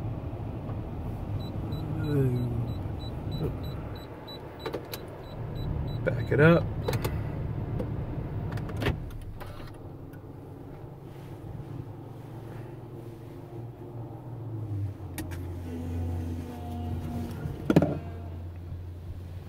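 Spinning brushes slap against the car.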